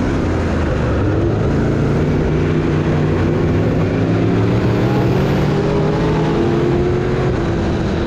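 Other race car engines drone nearby.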